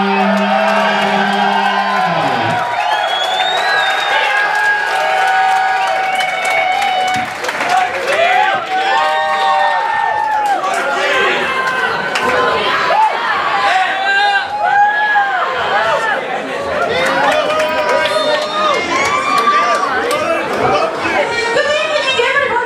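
Loud amplified electronic music plays.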